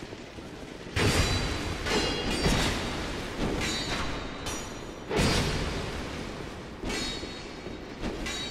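Fire bursts with a loud whooshing roar.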